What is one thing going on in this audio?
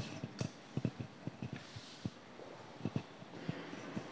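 Clothing rustles against a microphone with soft knocks.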